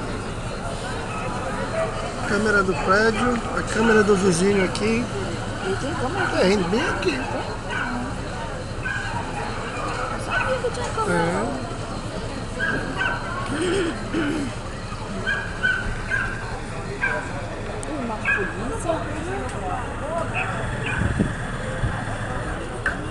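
A crowd of men and women talks and shouts outdoors.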